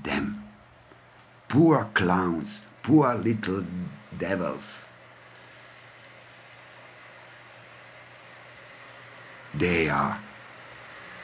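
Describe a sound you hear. A middle-aged man speaks calmly and close to the microphone, in short phrases with pauses.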